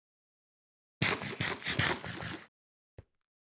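Someone munches food noisily.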